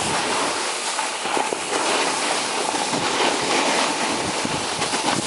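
A snowboard scrapes and hisses over the snow.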